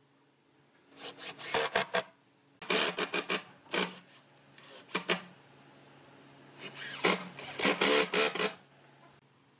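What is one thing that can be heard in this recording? A cordless drill whirs in short bursts as it drives screws into wood.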